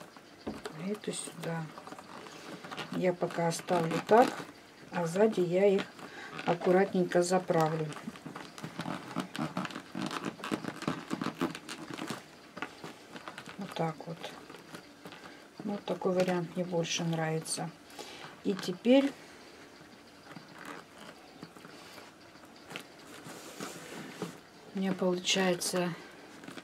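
Stiff paper strands rustle and tick softly as they are woven into a basket.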